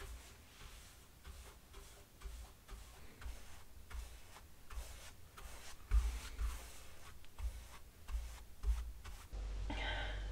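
A brush strokes and swishes across a wooden surface.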